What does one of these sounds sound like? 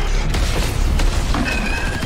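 A fireball explodes with a loud roar.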